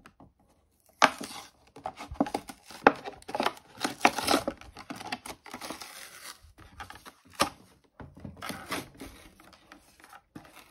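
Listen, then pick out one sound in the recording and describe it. Cardboard scrapes and tears as a box is pulled open.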